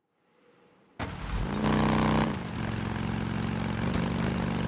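A motorcycle engine rumbles loudly as the bike rides along a road.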